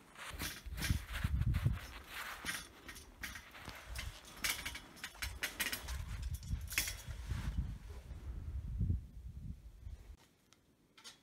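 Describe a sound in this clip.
Boots clank on a metal ladder.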